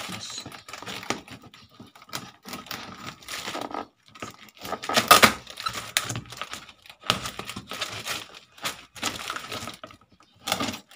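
Scissors scrape and cut along packing tape on a cardboard box.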